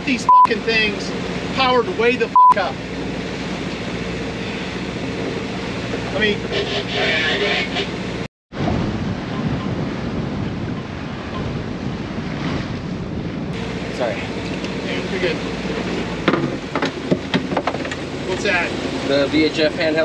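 Wind rushes steadily over a sailboat at sea.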